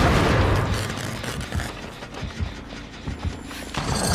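Footsteps rustle through tall grass.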